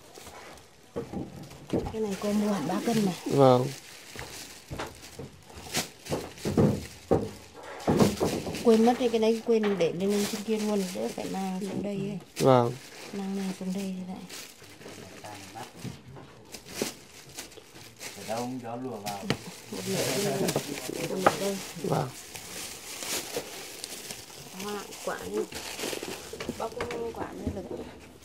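A woman talks nearby with animation.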